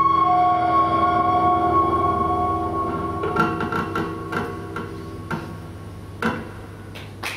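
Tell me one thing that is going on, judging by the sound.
Acoustic guitars pluck chords.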